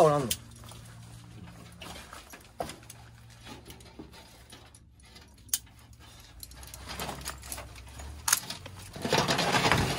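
Corrugated metal sheets clank and rattle as they are moved.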